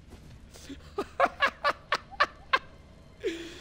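A man laughs loudly in short bursts close to a microphone.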